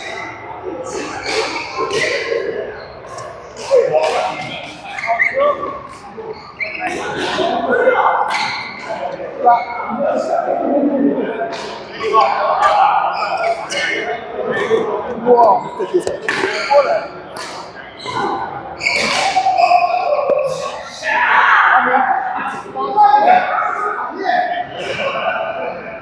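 Men talk and call out during play in an echoing hall.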